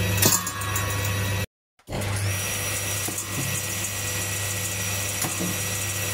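A table saw blade whirs steadily.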